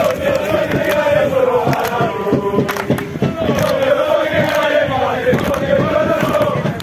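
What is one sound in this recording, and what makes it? Young men clap their hands in rhythm.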